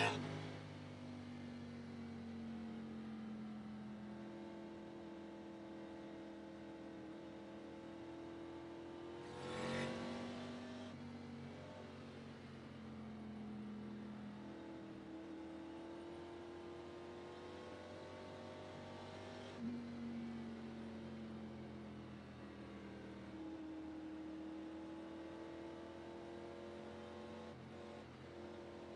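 A race car engine hums steadily, rising and falling in pitch as it shifts gears.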